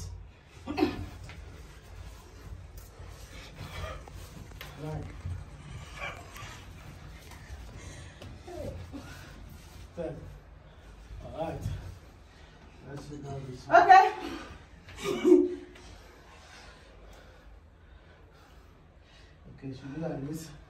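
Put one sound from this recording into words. Bare feet stamp and shuffle on a soft floor.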